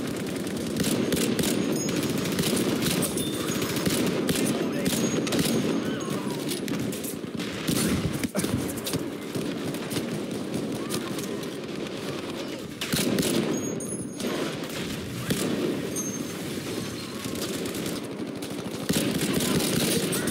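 Rifle shots crack now and then.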